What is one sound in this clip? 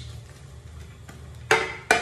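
Food drops into a pan.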